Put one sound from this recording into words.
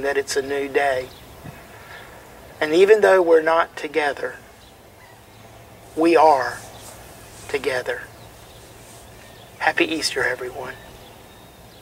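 An older man speaks calmly close by, with pauses.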